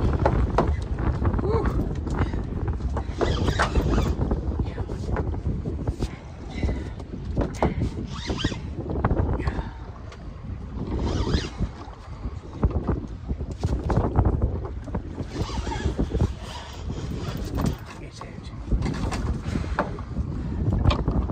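Waves slap against a small boat's hull.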